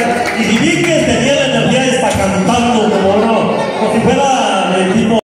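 A man sings through a microphone over loudspeakers.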